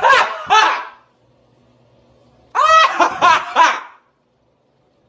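A young man laughs loudly and dramatically, close by.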